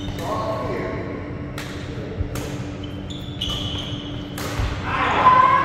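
Shoes squeak on the court floor.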